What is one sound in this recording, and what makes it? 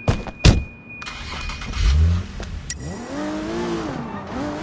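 A sports car engine revs as the car pulls away.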